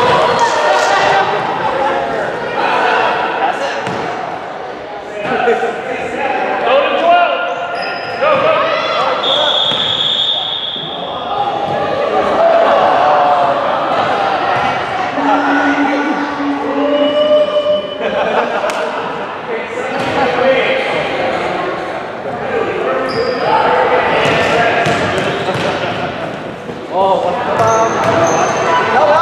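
Young girls shout and call out to each other in a large echoing gym.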